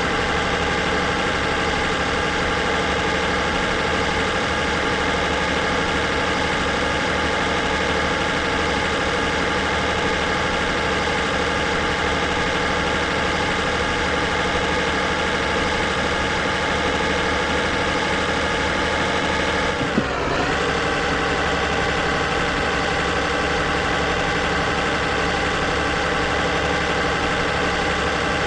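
A truck engine hums steadily while driving on a highway.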